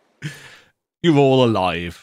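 A man talks and laughs close to a microphone.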